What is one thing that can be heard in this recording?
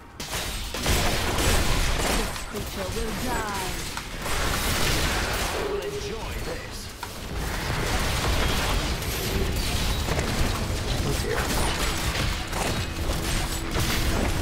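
Magic spells crackle and blast in a dense, constant stream of fighting sounds.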